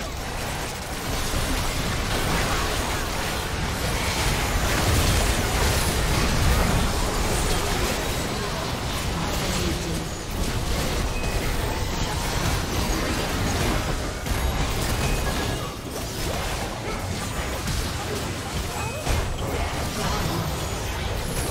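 Fantasy battle sound effects from a video game clash and burst in a fight.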